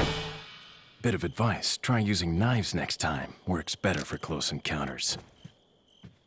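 A young man speaks in a low, calm voice.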